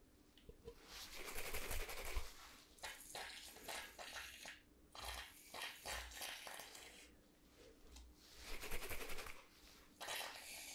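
A can is shaken with a rattling sound.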